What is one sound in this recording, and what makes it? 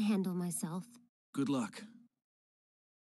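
A young woman speaks calmly and confidently, close by.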